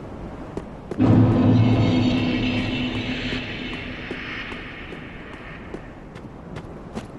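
A deep musical swell rises suddenly and slowly fades.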